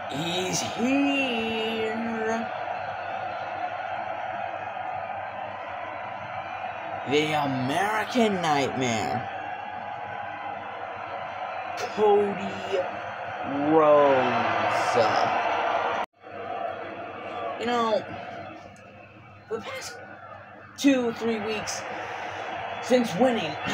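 A large crowd cheers and roars through a television loudspeaker.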